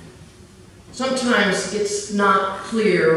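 A man speaks calmly into a microphone in a large echoing room.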